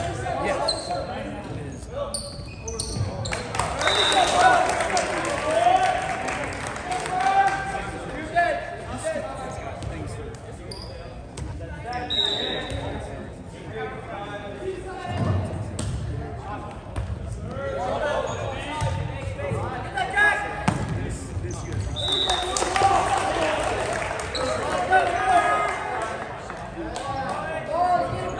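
Teenage boys shout and call to each other in an echoing gym.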